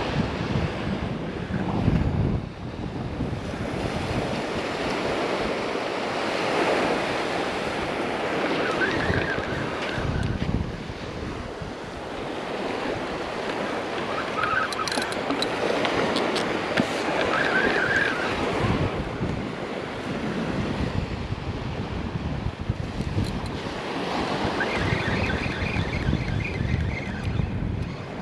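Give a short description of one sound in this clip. Small waves wash onto a beach.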